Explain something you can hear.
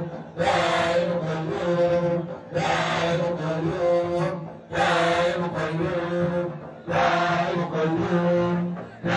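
A crowd of young girls chants loudly together in repeated phrases.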